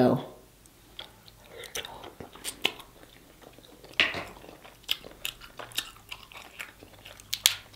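A woman chews and smacks her lips close to a microphone.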